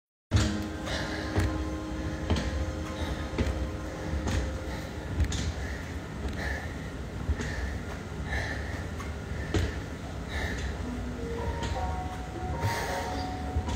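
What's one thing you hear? Footsteps thud at a steady walking pace, close by.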